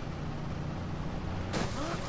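Tyres screech on the road as a car swerves.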